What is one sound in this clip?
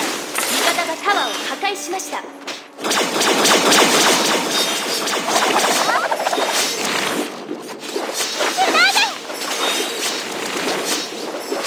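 Video game spell blasts and weapon strikes burst and crackle rapidly.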